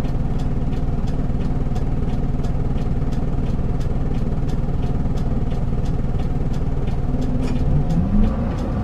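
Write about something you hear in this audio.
A diesel city bus engine idles.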